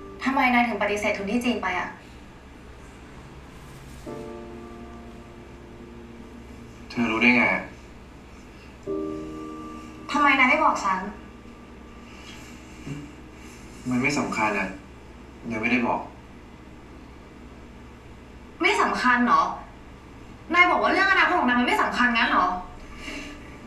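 A young woman speaks with emotion, heard through a loudspeaker.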